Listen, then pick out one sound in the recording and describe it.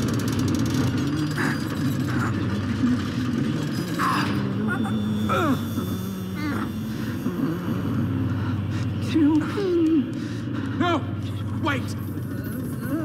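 A man mutters in strain.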